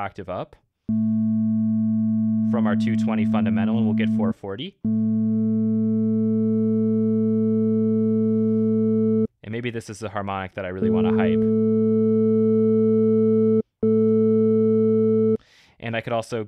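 A steady, low electronic tone hums with a buzzy edge.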